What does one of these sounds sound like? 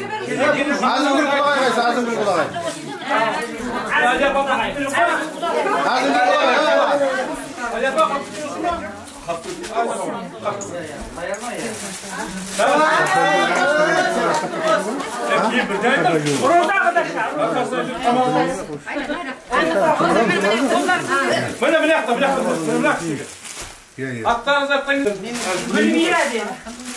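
Several women talk and chatter close by, in a lively and overlapping way.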